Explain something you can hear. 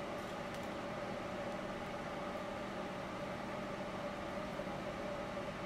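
A small fan hums steadily.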